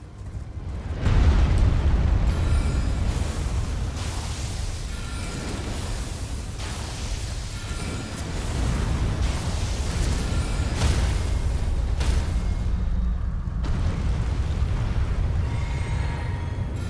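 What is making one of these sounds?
Deep booming thuds and rumbles of a huge creature crashing about fill the air.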